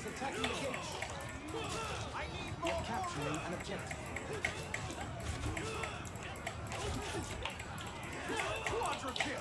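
Swords clash in a large battle.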